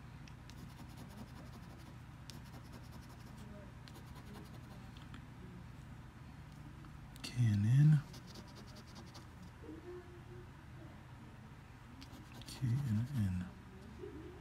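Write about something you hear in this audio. A coin scratches across a paper card.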